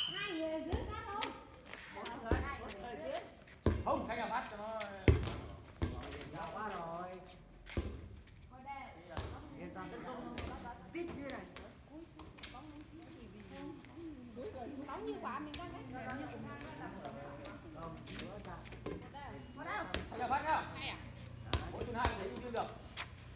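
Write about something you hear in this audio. Young women call out and chatter with animation nearby, outdoors.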